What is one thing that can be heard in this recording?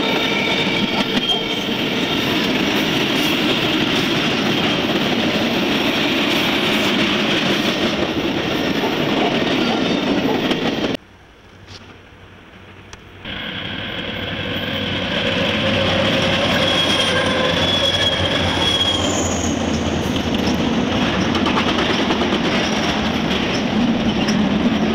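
Freight cars rumble and clatter past on the rails close by.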